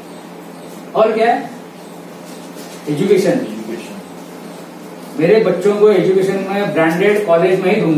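A middle-aged man speaks calmly to an audience in short phrases.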